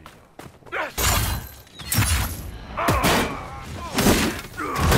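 Magic blasts burst with loud roars.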